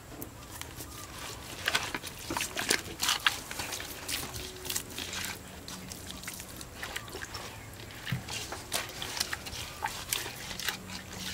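A hand rubs and pats raw fish with wet squelching and slapping sounds.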